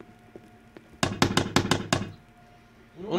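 An axe knocks against wooden logs several times.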